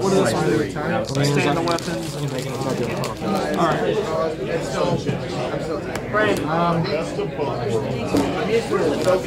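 Playing cards rustle and slap as hands shuffle and handle them.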